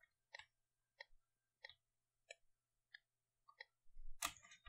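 A pickaxe chips at stone blocks with quick, regular taps.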